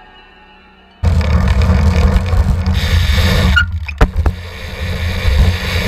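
Bicycle tyres roll and rumble over pavement.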